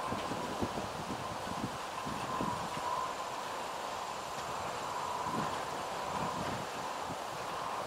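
Wind blows across an open field.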